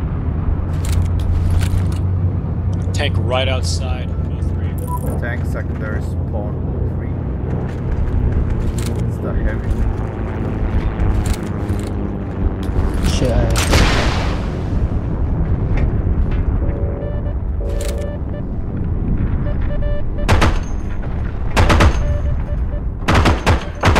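Gunshots crack now and then, with a short echo.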